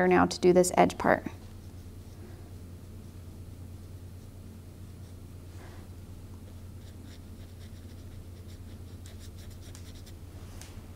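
A paintbrush brushes softly across paper.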